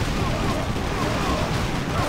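Magic spells burst with a whoosh.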